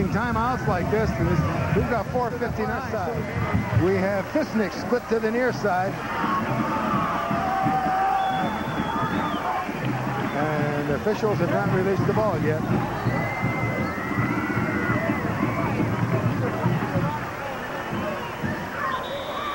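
A crowd of spectators cheers and chatters outdoors.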